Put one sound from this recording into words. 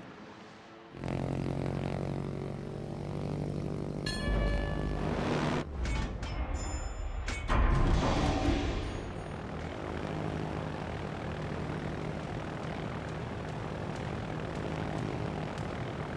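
Aircraft engines drone steadily overhead.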